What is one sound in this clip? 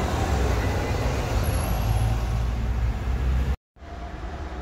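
A small car drives past on the road.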